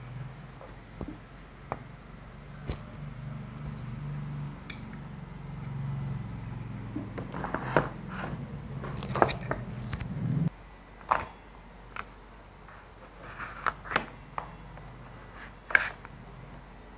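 Wooden blocks knock and clack together as they are stacked and moved.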